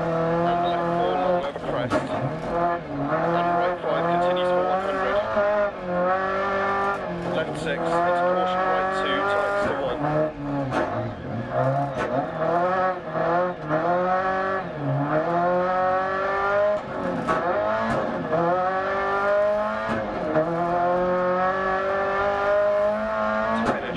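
A rally car engine revs hard, rising and falling as gears shift.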